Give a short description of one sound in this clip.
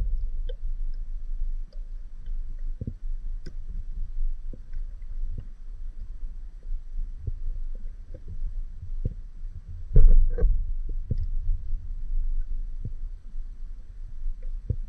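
Water rumbles softly and steadily, heard muffled underwater.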